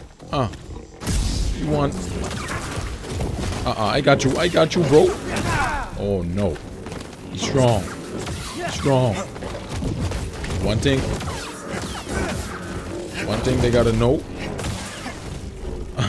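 A large beast roars and growls loudly.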